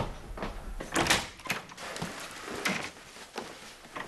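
A door opens with a click.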